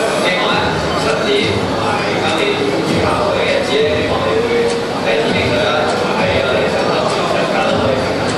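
A young man speaks calmly through loudspeakers in a large echoing hall.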